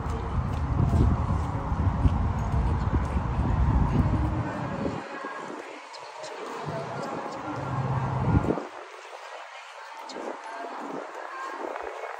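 Many footsteps shuffle on pavement as a group walks slowly outdoors.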